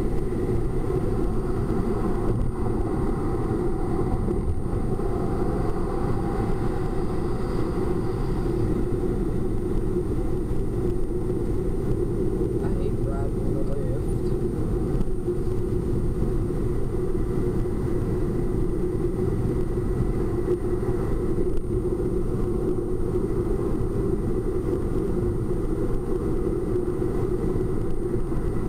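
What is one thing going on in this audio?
Road noise rumbles steadily from inside a moving car.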